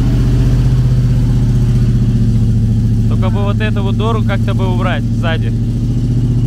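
A diesel truck engine rumbles steadily as the truck drives off.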